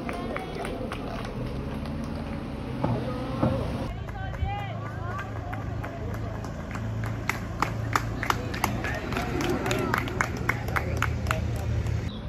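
A racing bicycle whirs past close by.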